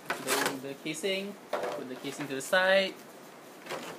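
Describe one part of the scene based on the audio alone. Plastic packaging clatters as it is picked up.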